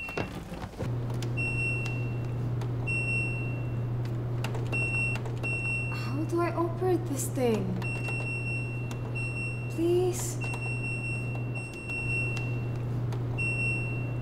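Buttons click as they are pressed.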